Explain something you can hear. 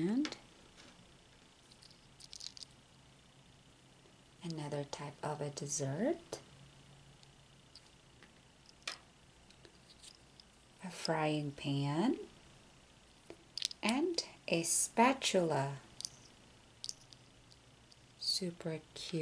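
Small plastic toys click softly against each other in a hand.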